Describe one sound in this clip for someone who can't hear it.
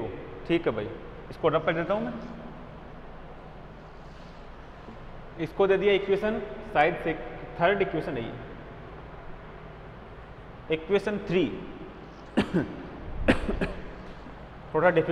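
A young man speaks calmly, as if lecturing.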